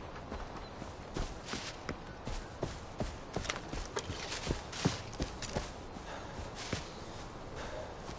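Footsteps crunch through long grass.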